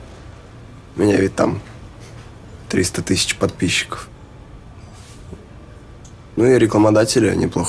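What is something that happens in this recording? A young man speaks weakly and hesitantly, close by.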